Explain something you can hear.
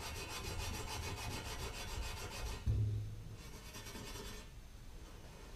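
A metal bicycle frame is scrubbed with quick, rhythmic rubbing strokes.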